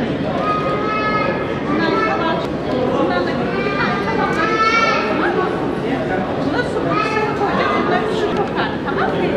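A crowd of men and women talk over one another nearby.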